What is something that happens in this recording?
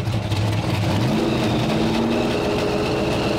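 A powerful car engine revs up sharply.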